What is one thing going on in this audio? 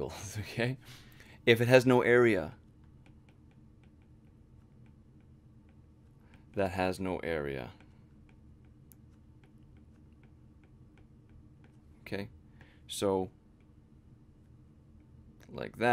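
A young man speaks calmly and explains, close to a microphone, with long pauses.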